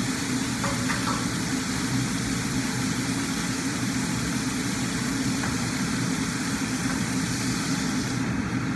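A range hood fan hums steadily.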